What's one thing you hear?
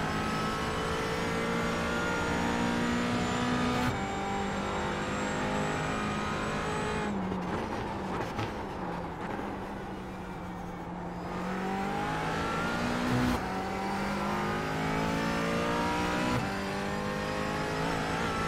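A race car engine roars and revs up through the gears, dropping low while braking for a corner.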